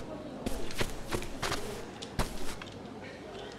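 Footsteps thud and clatter.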